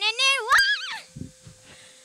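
A young girl sings loudly into a microphone.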